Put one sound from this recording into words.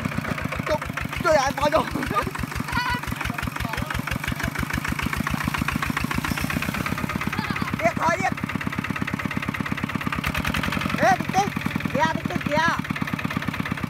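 Young men shout briefly over a chugging engine.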